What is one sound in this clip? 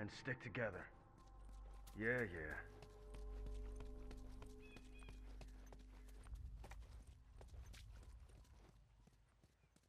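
Quick footsteps run over dry leaves and pavement.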